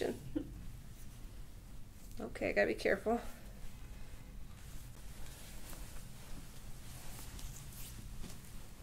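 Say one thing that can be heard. Hands rub and knead bare skin softly.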